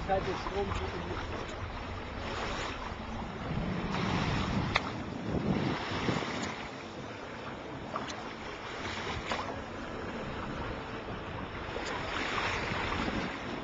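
Water rushes and splashes along the hull of a moving sailboat.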